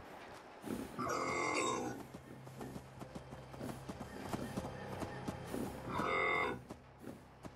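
A cow moos loudly nearby.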